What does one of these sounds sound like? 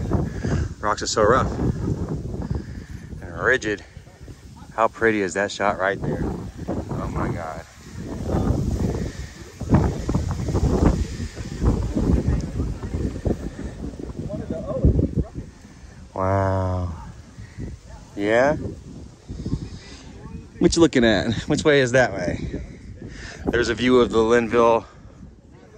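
Wind blows and rumbles across the microphone outdoors.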